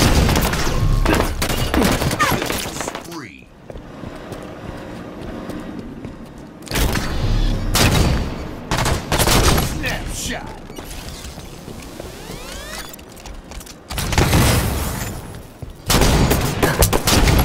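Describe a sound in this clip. Gunfire and explosions crack and boom in bursts.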